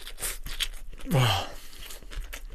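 A young man hums with pleasure close to a microphone.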